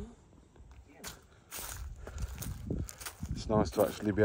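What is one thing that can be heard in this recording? Footsteps crunch on dry grass and twigs.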